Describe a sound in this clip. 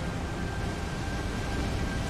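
Fire roars in a blast of flame.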